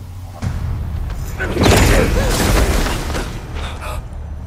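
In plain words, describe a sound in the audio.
A body crashes down onto loose rubble.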